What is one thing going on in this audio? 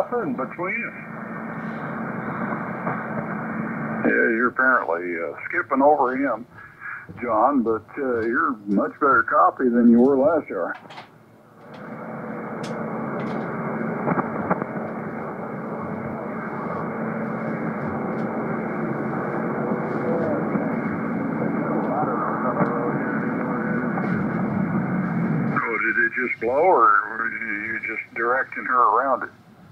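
Radio static hisses steadily from a loudspeaker.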